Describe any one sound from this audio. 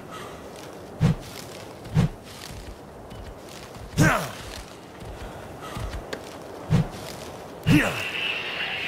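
A game character pulls and rustles leafy plants.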